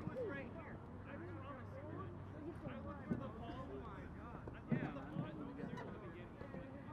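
Several young men call out to each other across an open field.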